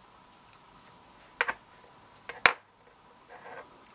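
Metal rings click and tap against a hard surface.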